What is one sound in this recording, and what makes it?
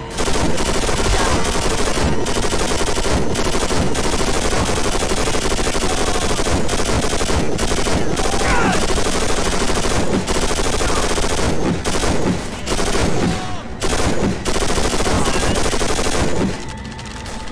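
A heavy machine gun fires in long rapid bursts.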